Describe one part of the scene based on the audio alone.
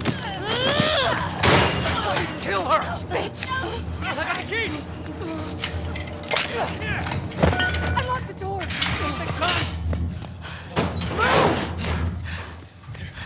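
Men shout angrily from behind bars, close by.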